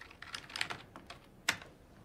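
Keys clatter as a man types on a keyboard.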